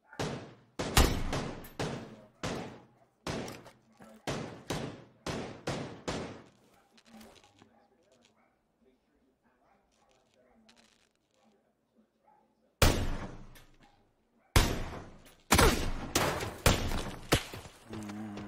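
A rifle fires loud sharp shots that echo away.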